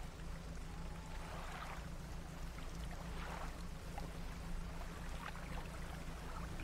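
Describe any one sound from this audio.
A small boat's engine hums low and steadily.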